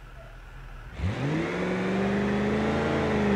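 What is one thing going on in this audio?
A pickup truck engine revs up and pulls away.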